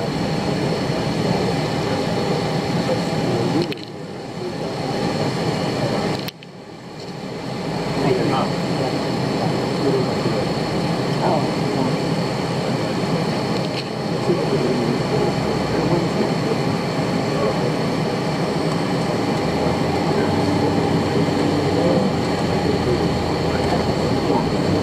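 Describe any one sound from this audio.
Many passengers chatter nearby in a crowded bus.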